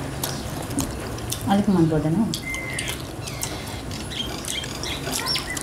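People chew and smack their lips while eating.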